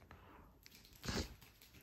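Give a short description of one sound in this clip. A sharp crack sounds from a neck being twisted.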